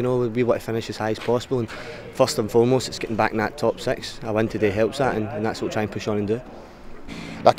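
A young man speaks calmly into a microphone, close up.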